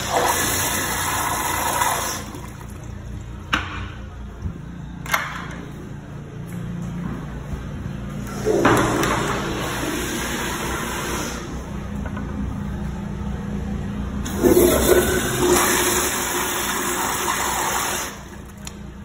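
A toilet flushes with a rushing swirl of water.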